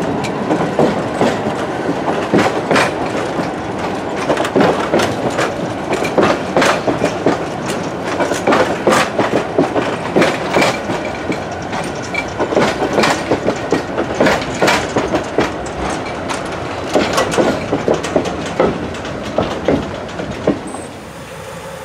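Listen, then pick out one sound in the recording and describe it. Wooden railway carriages rumble past close by on a track.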